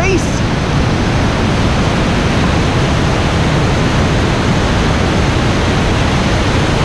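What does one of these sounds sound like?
A waterfall roars loudly close by.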